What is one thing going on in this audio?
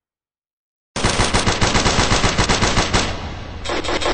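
A gun fires rapid bursts of shots, with loud echoing bangs.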